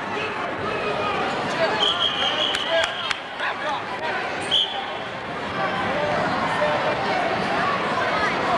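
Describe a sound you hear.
A crowd of adults and children chatters and calls out in a large echoing hall.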